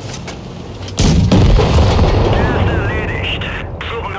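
A shell explodes with a heavy blast.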